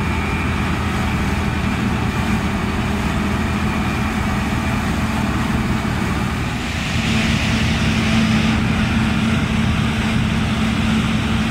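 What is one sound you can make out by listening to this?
A combine harvester's engine roars steadily close by.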